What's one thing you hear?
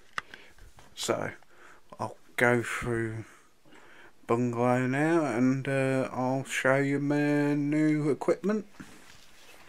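A man talks close by in a calm, chatty voice.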